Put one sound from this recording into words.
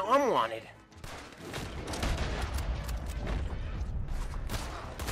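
Gunshots crack in quick succession.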